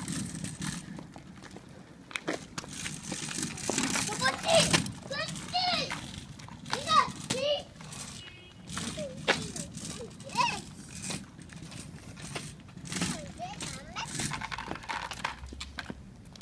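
Small plastic scooter wheels rumble on concrete.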